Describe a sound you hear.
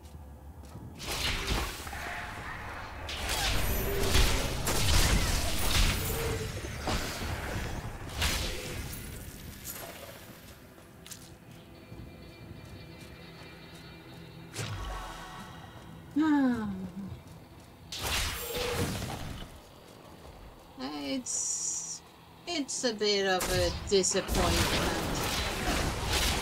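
Game combat effects clash and burst.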